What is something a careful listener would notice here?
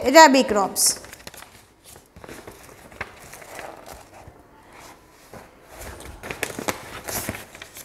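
Paper pages rustle.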